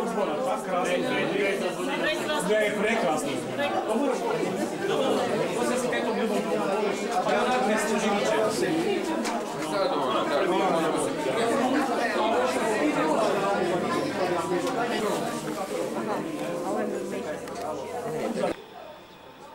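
A crowd of men and women talk and laugh loudly close by, in an echoing room.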